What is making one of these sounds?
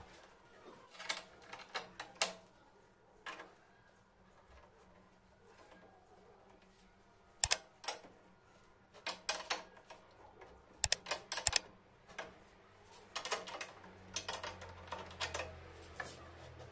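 A ratchet wrench clicks rapidly as a bolt is tightened.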